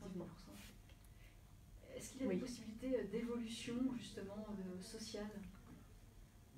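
A woman speaks calmly and close into a microphone.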